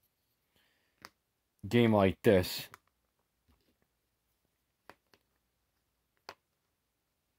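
A small plastic piece taps against a cardboard card.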